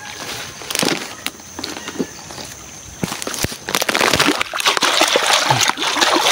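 A shallow stream trickles and splashes over rocks close by.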